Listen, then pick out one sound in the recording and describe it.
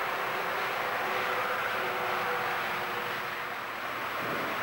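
A train horn sounds in long tones.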